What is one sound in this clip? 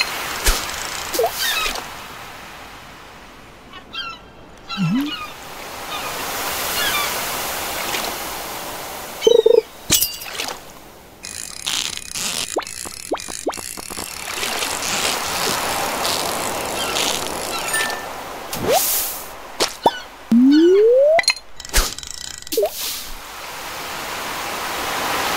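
A fishing line is cast with a quick swish.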